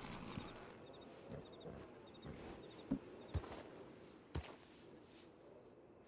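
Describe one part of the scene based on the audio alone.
A horse's hooves clop as it walks on dirt.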